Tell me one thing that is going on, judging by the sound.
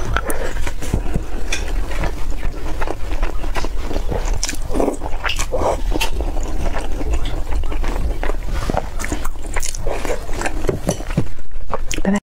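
A young woman chews and slurps food noisily close to a microphone.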